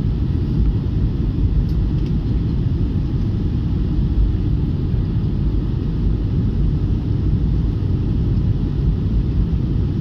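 Jet engines roar with a steady, deep rumble, heard from inside an airliner cabin.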